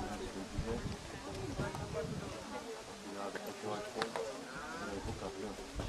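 A woman talks calmly from a short distance outdoors.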